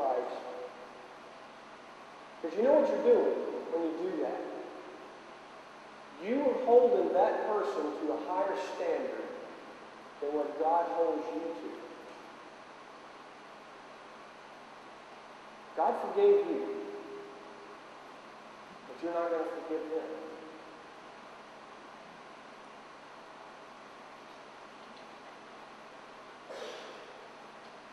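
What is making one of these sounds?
A middle-aged man speaks through a clip-on microphone in bursts, with long pauses.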